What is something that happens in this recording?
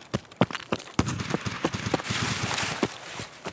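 Leaves rustle loudly and close by.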